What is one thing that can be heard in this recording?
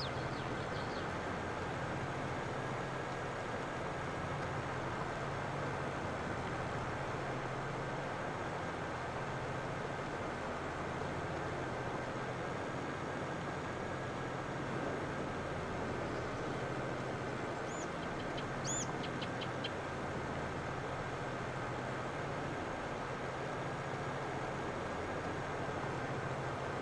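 A tractor engine hums steadily while pulling a plough through soil.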